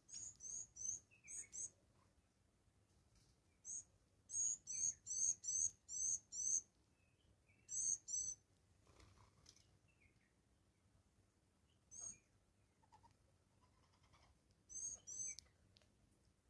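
A small bird chirps in short, high bursts close by.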